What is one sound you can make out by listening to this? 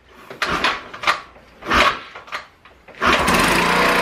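A scooter's kick starter is pushed down several times.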